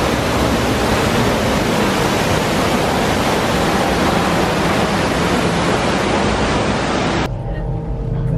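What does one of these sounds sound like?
Water splashes and rushes down a rocky waterfall.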